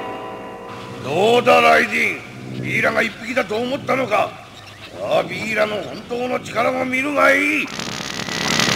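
A man speaks in a deep, menacing voice.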